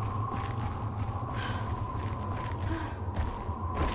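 Quick footsteps run over grassy ground.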